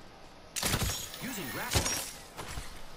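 A gun fires a short burst.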